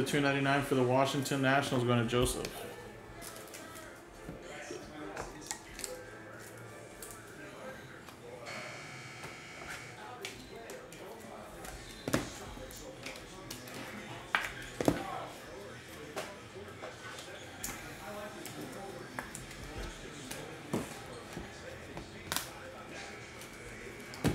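Plastic card cases click and rustle in hands.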